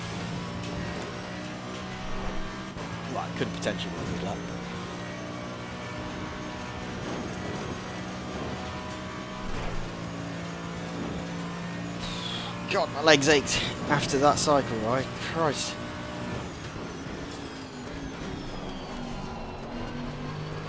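A racing car engine roars steadily, rising and falling in pitch as the car shifts gears.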